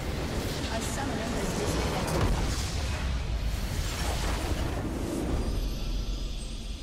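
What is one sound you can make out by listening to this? A video game base crystal explodes with a deep rumble.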